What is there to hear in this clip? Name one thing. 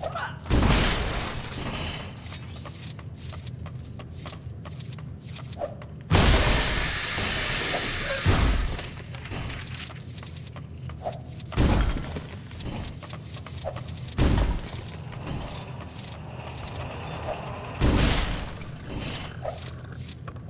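Small coins jingle and clink in quick runs.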